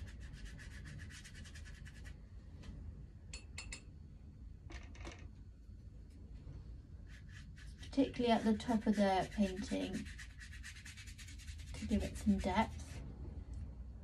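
A paintbrush taps and dabs quickly on paper.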